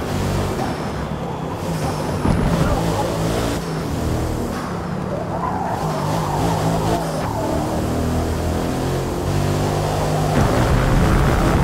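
A race car engine roars loudly, rising and falling in pitch as the car shifts gears.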